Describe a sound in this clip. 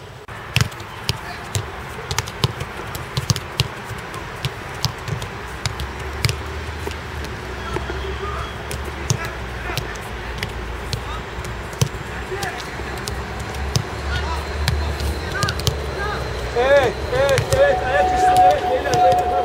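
A football is kicked with sharp thuds, again and again.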